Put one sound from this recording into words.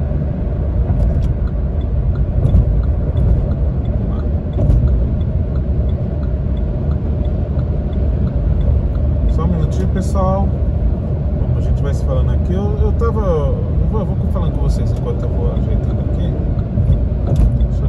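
Tyres roar steadily on the road.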